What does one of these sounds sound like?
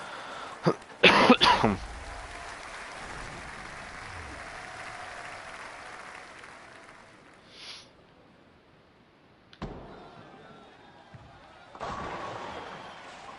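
Bowling pins crash and clatter loudly.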